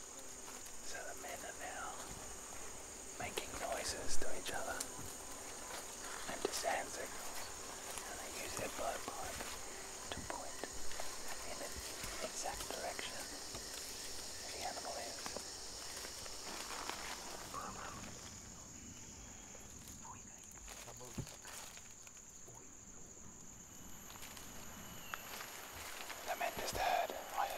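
A man talks quietly and urgently close by.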